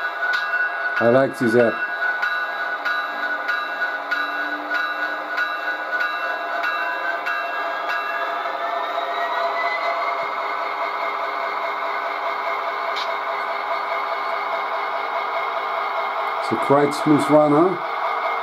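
A model locomotive's horn blares in short blasts.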